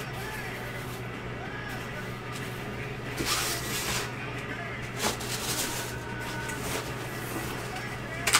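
A padded mailer and cardboard box rustle and crinkle as hands handle them.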